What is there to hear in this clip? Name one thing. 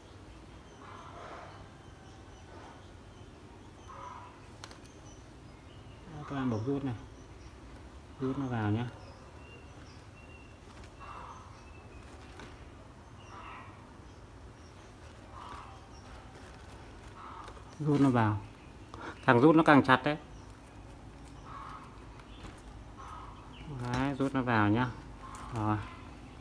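Plastic film rustles softly as hands tie string onto a frame.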